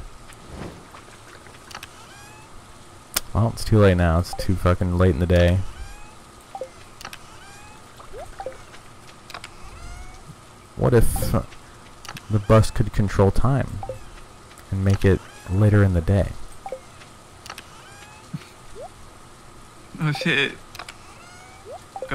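A game menu opens with a soft click.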